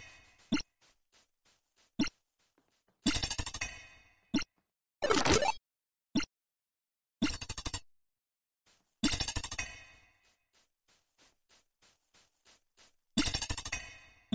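Short electronic menu chimes and clicks sound from a game.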